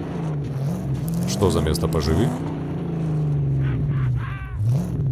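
A car engine hums steadily, rising and falling in pitch.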